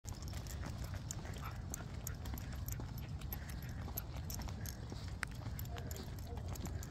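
Footsteps in clogs scuff on pavement.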